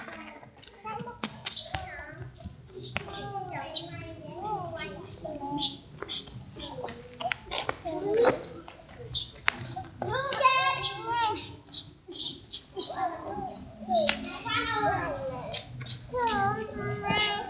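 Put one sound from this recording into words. Young children shout and babble playfully nearby.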